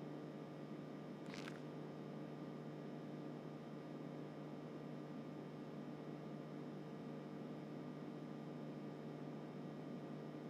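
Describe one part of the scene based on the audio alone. An electronic device hums steadily.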